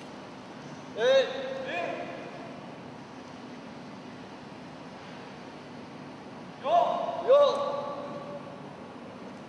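Two young men let out sharp, loud shouts in a large echoing hall.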